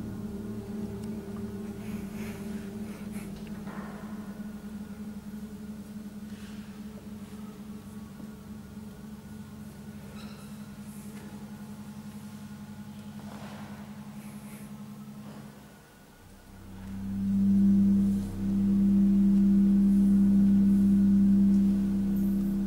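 An organ plays steady, sustained low notes in a large echoing hall.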